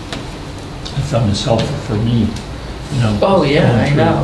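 An adult speaks calmly in a small room, heard through a meeting microphone.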